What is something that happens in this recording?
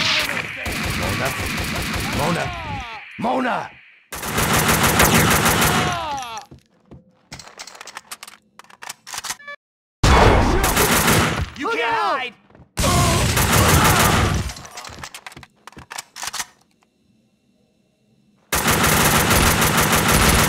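Gunfire rattles in rapid bursts with loud echoing shots.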